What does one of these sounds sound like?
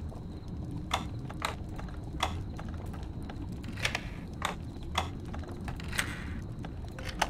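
A metal lock pick clicks and scrapes inside a lock.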